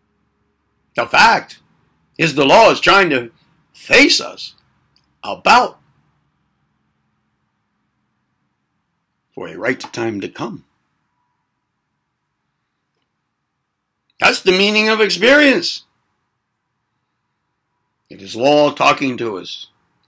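An elderly man speaks calmly in short bursts close to a microphone, with long pauses.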